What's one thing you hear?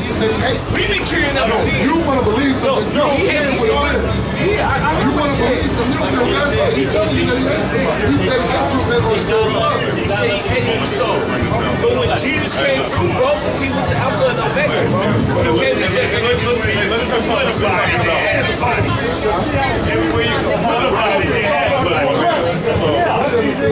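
Several people talk at once nearby outdoors on a busy street.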